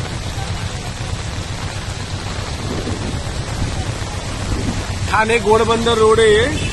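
Floodwater rushes steadily in a low roar.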